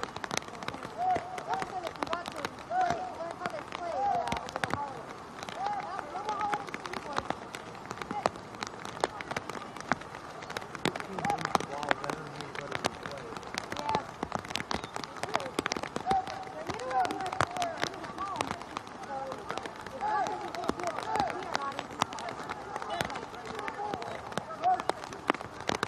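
Young players shout and call out to each other across an open outdoor field.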